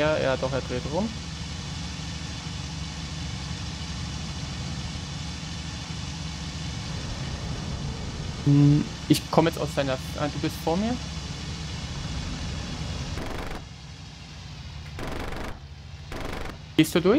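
A propeller plane's engine drones steadily.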